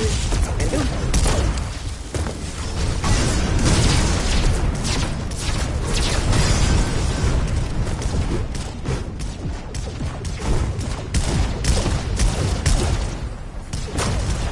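Game sound effects of blasts and impacts crackle loudly.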